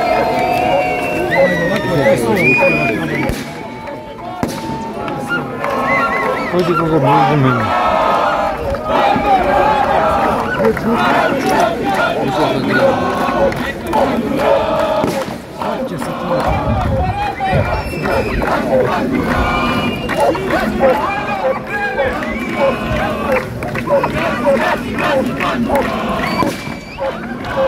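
Police dogs bark excitedly.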